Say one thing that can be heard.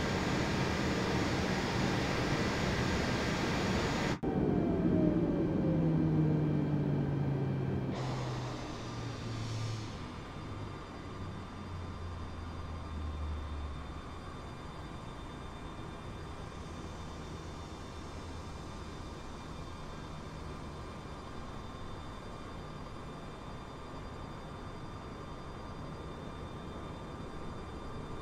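Jet engines whine and hum steadily as an airliner idles.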